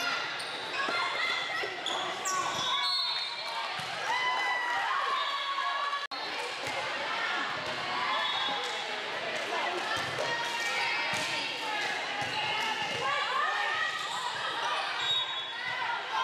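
Many young girls' voices chatter and call out, echoing in a large hall.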